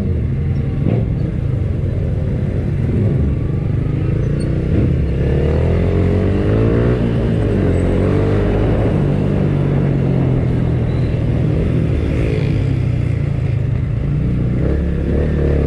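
A motorcycle engine hums steadily at low speed.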